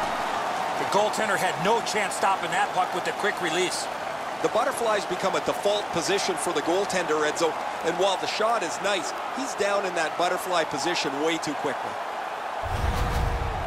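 Ice skates scrape and hockey sticks clack against a puck.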